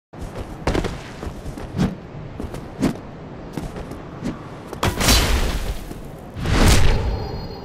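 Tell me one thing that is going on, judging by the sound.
Weapons clash and strike in a game fight.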